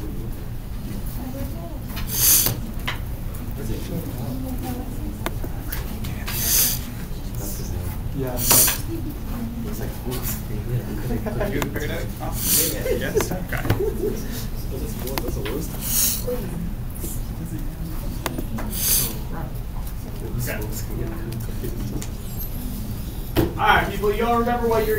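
A mouse clicks now and then.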